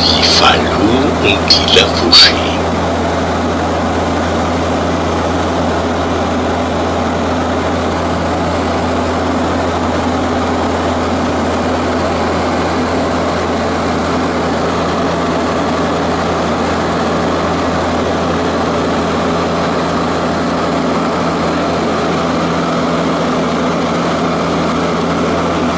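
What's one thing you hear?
A small propeller plane's engine drones steadily from inside the cabin.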